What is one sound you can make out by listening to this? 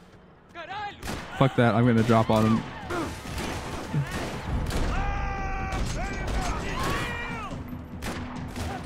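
Gunshots crack in rapid bursts, echoing around.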